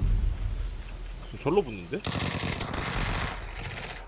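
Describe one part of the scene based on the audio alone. Rapid gunshots crack nearby.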